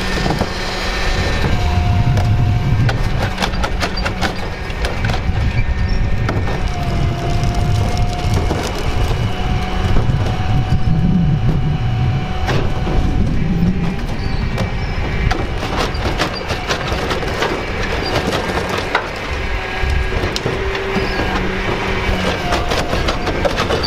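Plastic trash bins bang and thump as they are tipped into a garbage truck.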